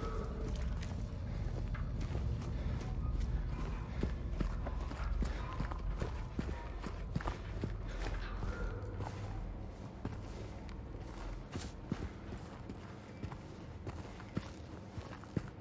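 Footsteps walk steadily on hard ground and floorboards.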